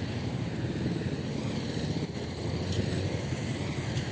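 Motorcycles buzz past.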